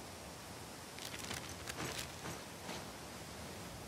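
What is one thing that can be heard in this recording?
Footsteps crunch on grass and rock.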